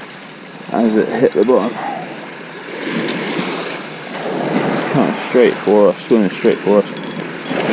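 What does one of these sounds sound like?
Small waves wash over a shingle beach.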